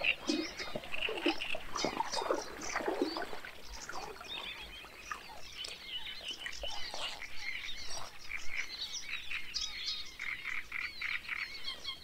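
Water sloshes as a man wades slowly through shallow water.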